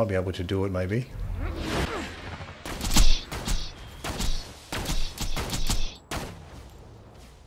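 Gunshots crack and boom in quick bursts.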